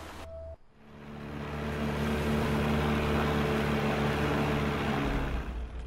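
Water splashes against a small boat.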